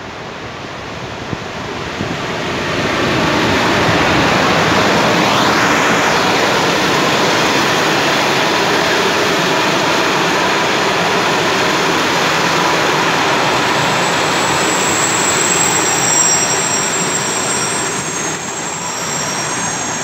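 A passenger train rumbles and clatters past close by on the tracks.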